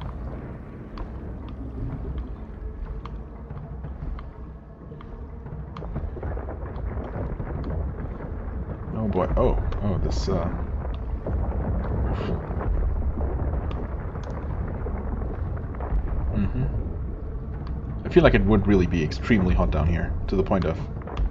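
Fire roars with a low, steady rumble.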